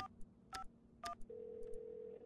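Phone keypad buttons beep in quick tones.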